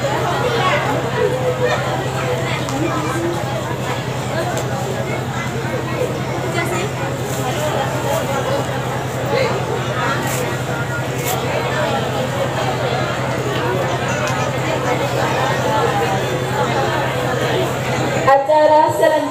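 Many men talk at once outdoors, in a steady murmur.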